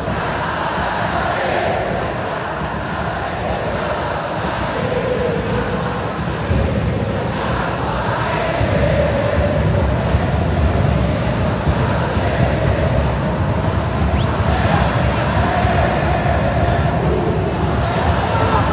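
A huge stadium crowd sings and chants loudly in unison.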